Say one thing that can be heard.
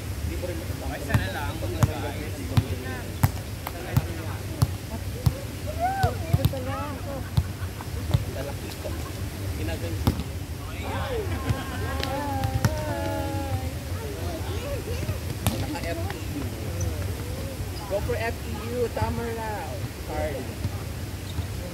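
Young people call out and shout to each other outdoors.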